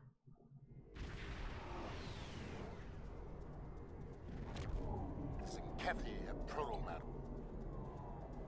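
Spaceship engines rumble and lasers fire in a game.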